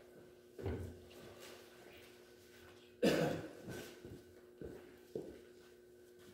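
Footsteps thud on a hollow floor.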